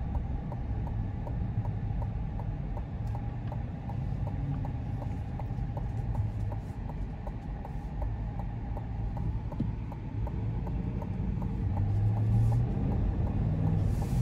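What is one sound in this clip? Turn signal clicks tick at an even pace.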